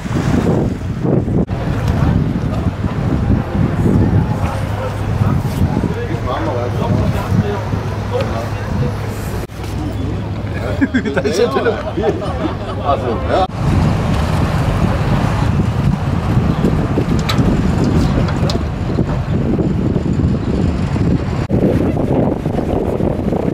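Water washes along the hull of a moving boat.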